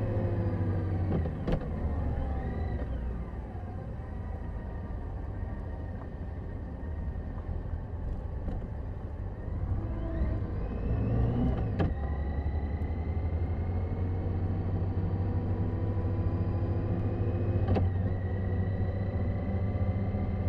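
A motorcycle engine hums steadily, rising and falling in pitch as it changes speed.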